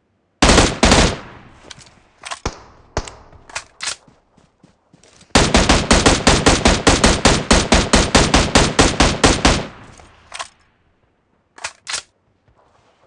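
A rifle fires shot after shot in quick succession.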